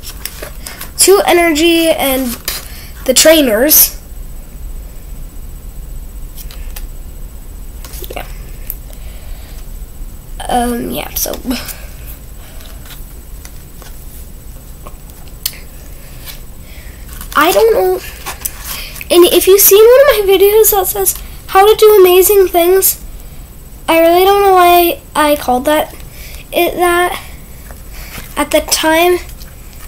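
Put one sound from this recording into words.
A young girl talks close by, in short bursts with pauses.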